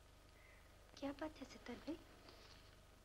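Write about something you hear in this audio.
A young woman asks a short question softly, close by.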